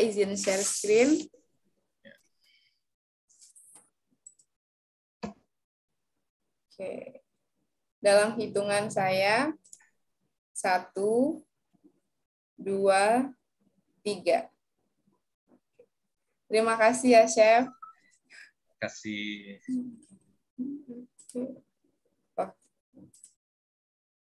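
A young woman speaks with animation over an online call, with pauses.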